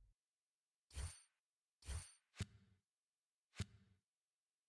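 Soft interface clicks sound a few times.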